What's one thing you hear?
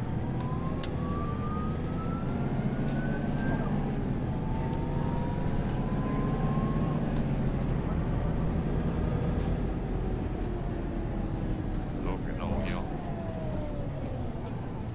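A bus engine hums and whines steadily as the bus drives along.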